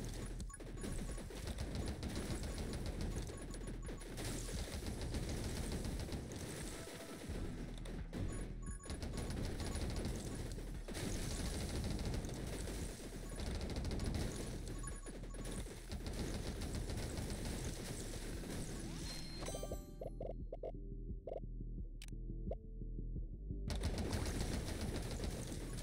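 Driving game music plays throughout.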